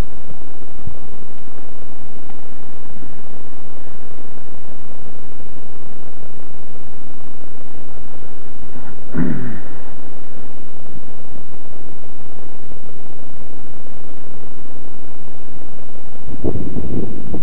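Air rushes loudly past a small flying model plane.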